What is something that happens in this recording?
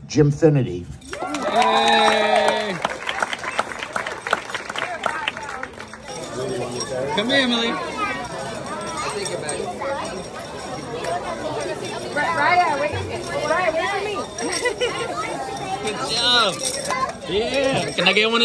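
Young girls chatter and squeal excitedly nearby.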